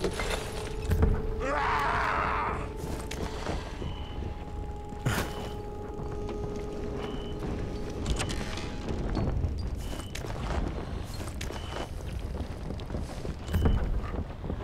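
A wooden cupboard door swings open.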